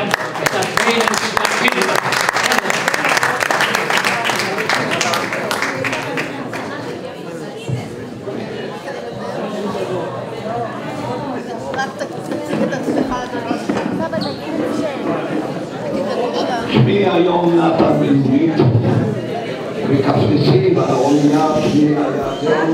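A crowd of men and women chatters and calls out all around.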